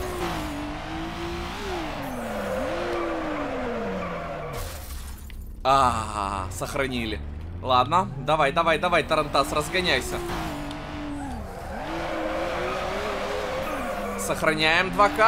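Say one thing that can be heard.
A racing car engine revs and whines, rising and falling in pitch.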